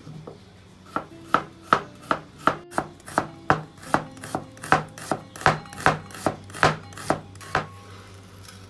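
A knife chops quickly on a wooden board.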